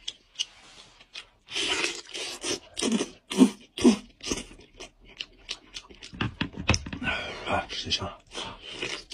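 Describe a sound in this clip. A man chews food loudly and wetly close to the microphone.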